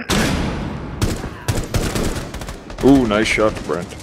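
A rifle fires a burst of rapid shots.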